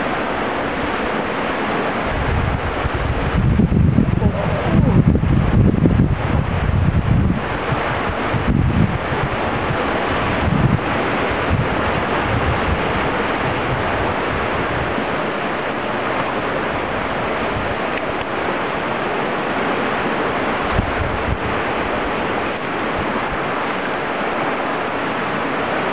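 Wind blows hard outdoors, buffeting loudly at times.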